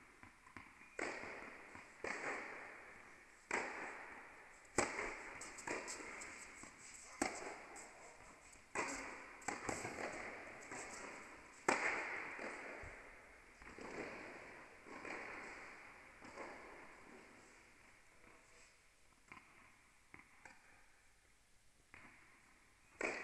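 Tennis balls are struck with rackets and bounce, echoing in a large indoor hall.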